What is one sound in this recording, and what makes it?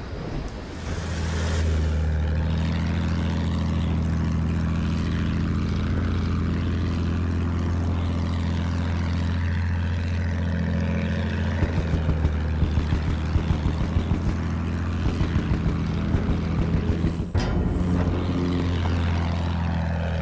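A biplane's piston engine drones in flight.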